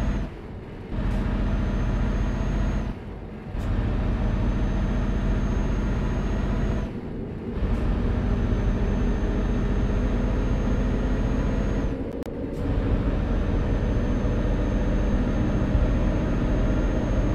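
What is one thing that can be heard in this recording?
A truck engine drones steadily as it drives along a road.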